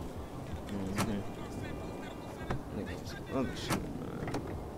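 A car door clicks open with a sharp thud.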